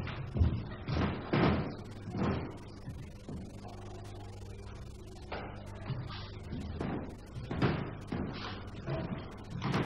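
A girl's shoes step on a wooden floor.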